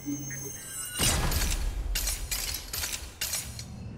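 A box opens with a burst of mechanical clatter.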